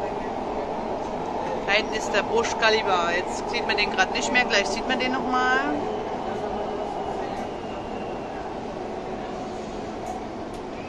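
A train hums and rumbles steadily along the track.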